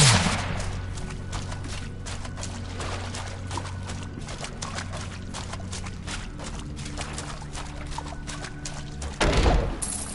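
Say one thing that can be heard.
Footsteps patter rapidly on stone.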